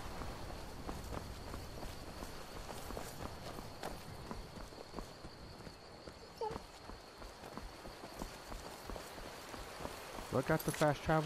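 Footsteps thud steadily on stone paving.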